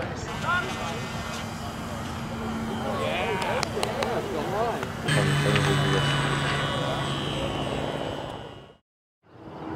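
A small model plane engine whines loudly as it takes off.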